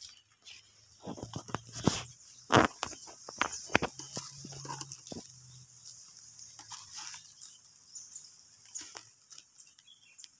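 Footsteps crunch on dry straw and earth.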